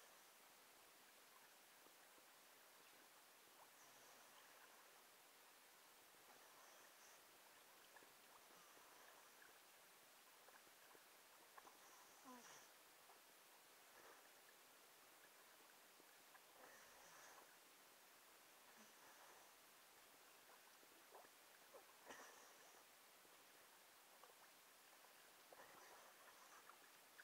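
Water splashes as hands paddle through it.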